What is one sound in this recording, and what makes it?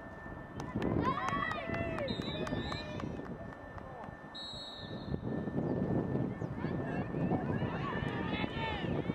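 Young women shout across an open playing field.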